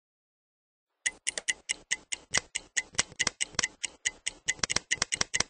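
A game menu ticks rapidly and repeatedly.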